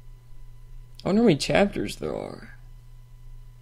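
A young man speaks briefly and animatedly into a close microphone.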